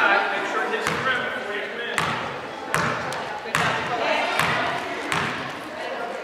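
A basketball bounces repeatedly on a hard floor in a large echoing hall.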